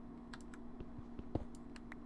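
A pickaxe taps repeatedly on stone.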